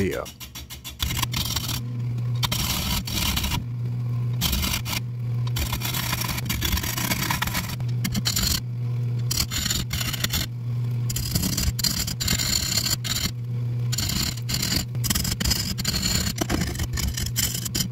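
A chisel scrapes and shaves wood on a spinning lathe.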